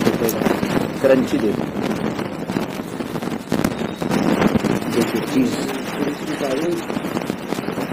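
A knife saws through a toasted wrap on a plastic board.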